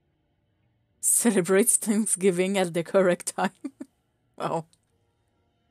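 A game character's voice exclaims in a burst of gibberish.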